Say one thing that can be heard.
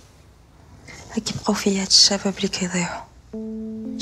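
A young woman answers calmly close by.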